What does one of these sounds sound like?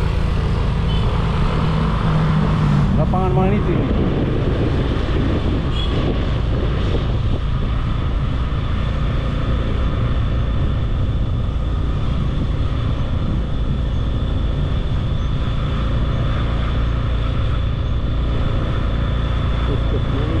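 Wind rumbles steadily against a moving rider.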